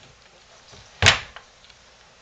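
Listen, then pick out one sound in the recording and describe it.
A small hand bangs on a wooden drawer.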